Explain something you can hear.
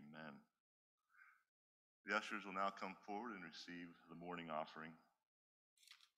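A man speaks calmly into a microphone.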